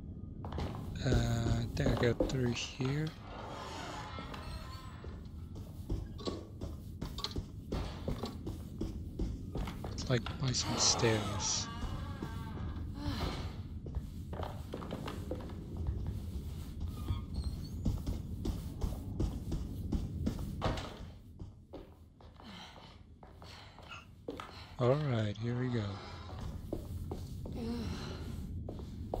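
Footsteps tread steadily across a wooden floor.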